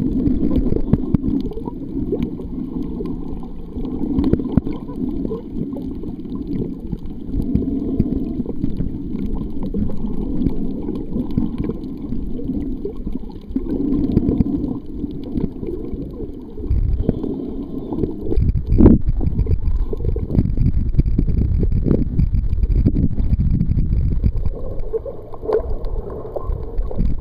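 Water rushes and bubbles steadily around a microphone underwater.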